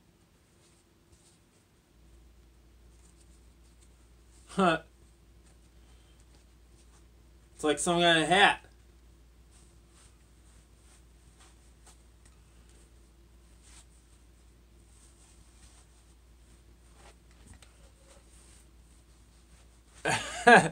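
Fabric rustles as a young man handles a costume.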